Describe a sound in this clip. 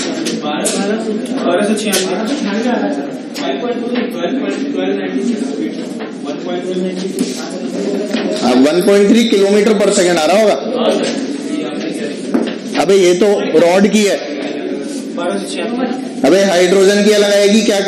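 A man lectures with animation, heard through a microphone, in a slightly echoing room.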